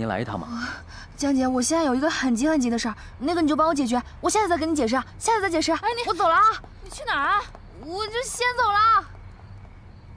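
A young woman speaks tensely, close by.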